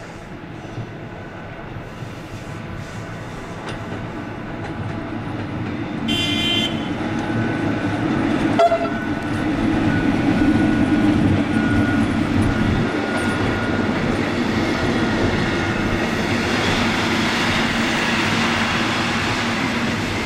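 An electric locomotive hums as it pulls a passenger train past, growing louder.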